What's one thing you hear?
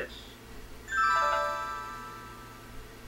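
A video game plays a descending chime.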